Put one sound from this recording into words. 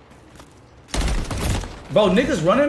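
A gun fires a short burst.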